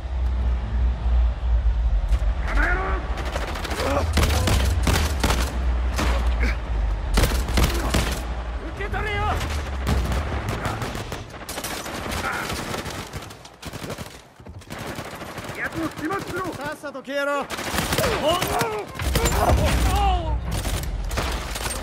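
Guns fire in quick bursts of sharp shots.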